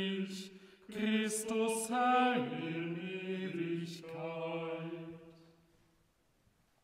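A man sings a chant through a microphone in an echoing hall.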